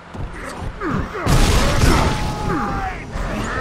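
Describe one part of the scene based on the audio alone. An explosion booms and debris clatters.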